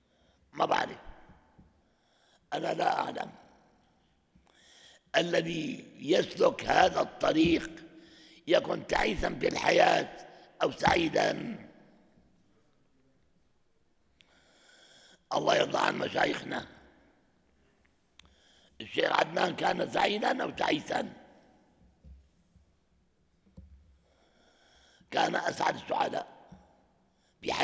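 An elderly man speaks with animation into a nearby microphone, in bursts with pauses.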